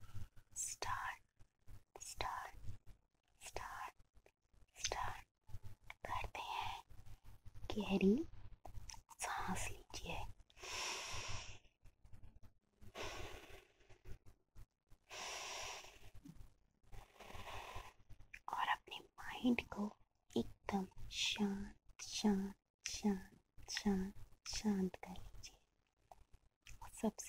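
A young woman whispers softly and close into a microphone.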